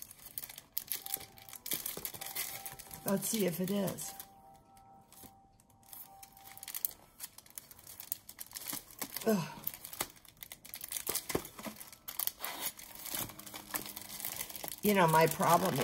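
Plastic packaging rustles and crinkles close by.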